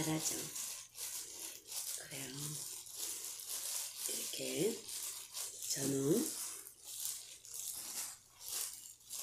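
Plastic gloves crinkle and rustle as hands work.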